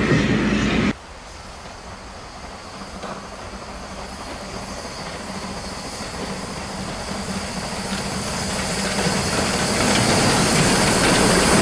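A steam locomotive chugs as it approaches and grows louder.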